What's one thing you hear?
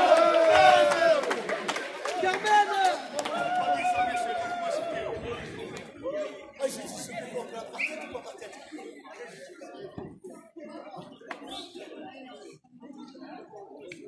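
A crowd of young people shouts and cheers loudly nearby.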